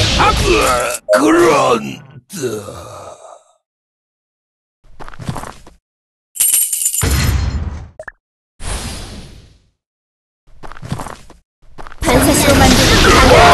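Game battle sound effects of weapons striking clash in short bursts.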